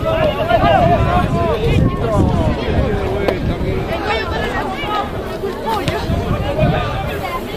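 Young men shout to each other outdoors across an open field.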